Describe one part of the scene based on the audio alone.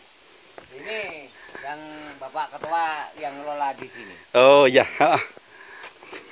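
An elderly man talks nearby in a friendly way.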